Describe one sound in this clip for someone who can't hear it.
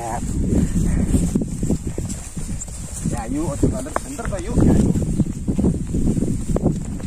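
Footsteps swish and thud through grass.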